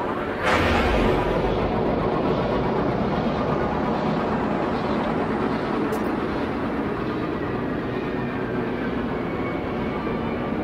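A spacecraft engine roars steadily, with a swelling rush at the start.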